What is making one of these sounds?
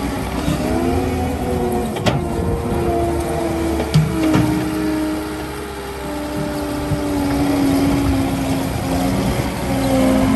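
Rubber tracks crunch over loose dirt.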